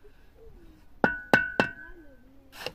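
A shovel clanks against a metal wheelbarrow.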